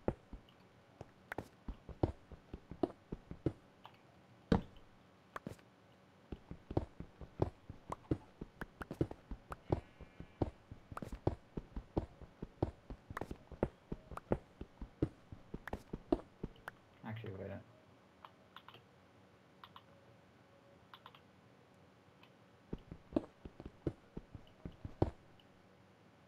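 A pickaxe chips rapidly at stone, block after block crumbling away.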